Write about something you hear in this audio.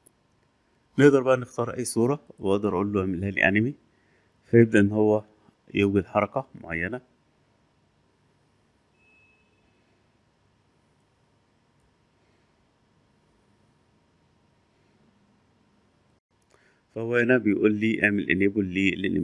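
A man speaks calmly and close to a microphone, in bursts with pauses.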